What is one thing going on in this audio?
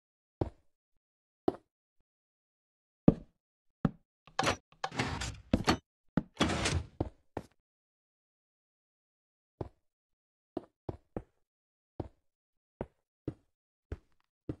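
Blocks are placed with short soft thuds.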